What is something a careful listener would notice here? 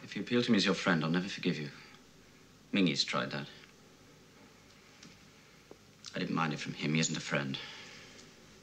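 A young man speaks quietly and earnestly nearby.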